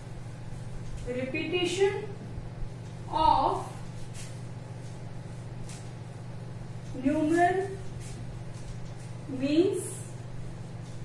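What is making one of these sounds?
A young woman speaks calmly in short phrases.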